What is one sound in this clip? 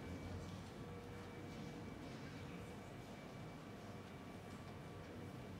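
A large crowd of young people murmurs and chatters in a big echoing hall.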